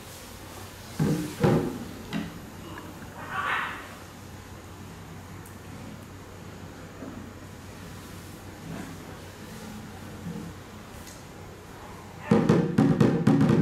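Sticks strike a drum in sparse beats, then a fast burst of drumming.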